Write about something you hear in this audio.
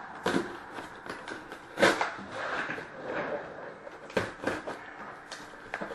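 Hands tap and rub against a cardboard box.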